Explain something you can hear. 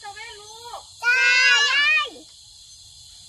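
A young girl shouts loudly up close.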